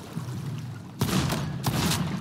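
A gunshot cracks sharply nearby.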